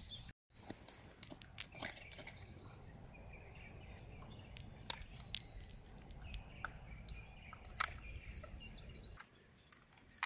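Hard shells clack and knock against stones.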